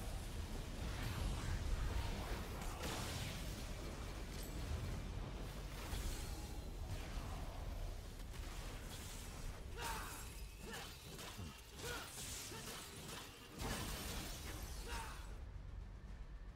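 Energy blasts roar and crackle loudly.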